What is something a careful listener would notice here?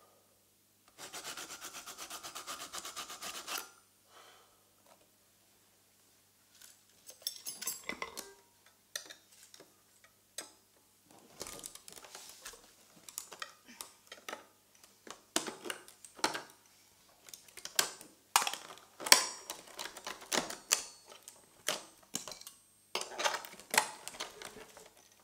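Small objects click, tap and rattle close by.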